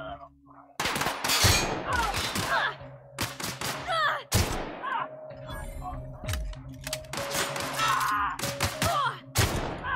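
A rifle fires loud gunshots in bursts.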